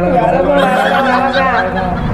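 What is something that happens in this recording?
Young men laugh together.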